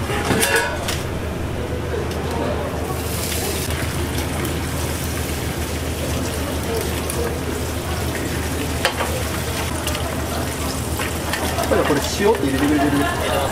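Food sizzles in hot pans.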